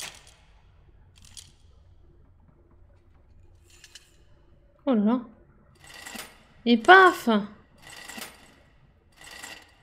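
A metal lever clanks as it is pulled down.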